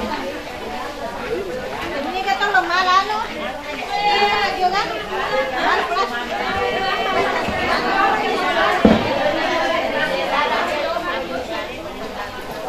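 Several women chat with one another nearby in lively voices.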